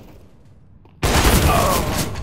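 A rifle fires a single loud, booming shot.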